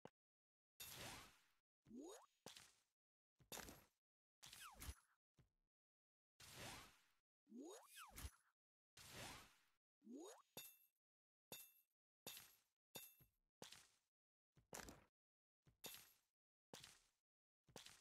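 Game blocks pop and burst with bright chiming effects.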